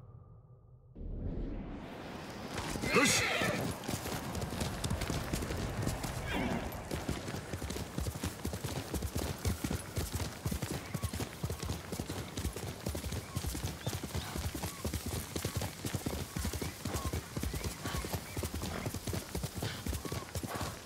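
A horse gallops with quick, rhythmic hoofbeats.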